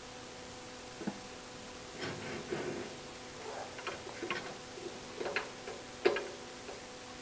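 Small metal parts click and clink as they are fitted together.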